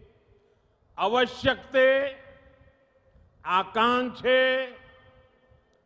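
An elderly man speaks forcefully into a microphone, in short emphatic phrases.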